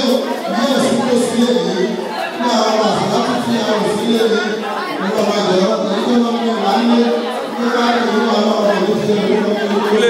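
A crowd of women and men chatter all around in a busy room.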